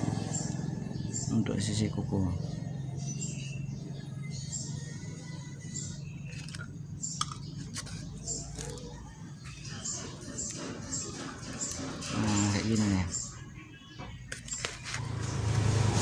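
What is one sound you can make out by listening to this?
Small metal engine parts click and clink together as hands handle them.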